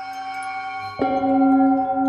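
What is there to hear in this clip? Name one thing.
A mallet strikes a metal singing bowl once, sharply.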